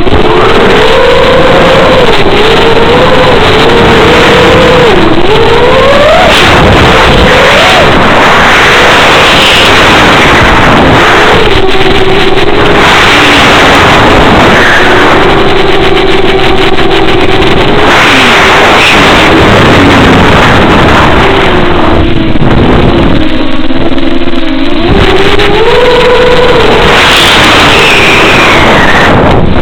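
An electric motor whines loudly, rising and falling in pitch.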